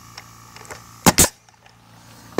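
A nail gun fires sharp bangs into wood.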